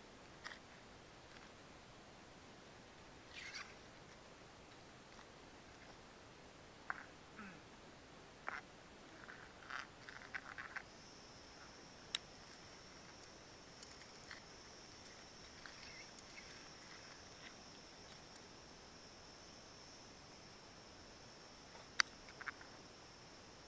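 Branches and bark creak and knock as a person climbs a tree close by.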